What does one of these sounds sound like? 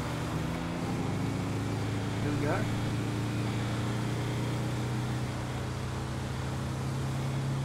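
A truck engine hums steadily as it drives along a road.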